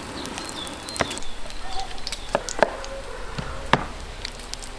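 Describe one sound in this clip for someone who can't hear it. A knife knocks against a wooden cutting board.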